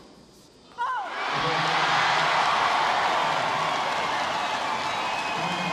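A crowd erupts into loud cheering and applause in a large echoing hall.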